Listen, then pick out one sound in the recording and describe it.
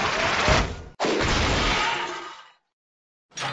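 A cartoon game explosion bursts.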